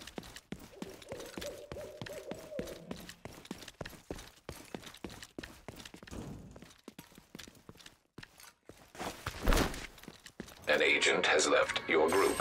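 Footsteps patter on pavement.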